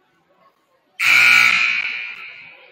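A loud buzzer sounds and rings out in an echoing gym.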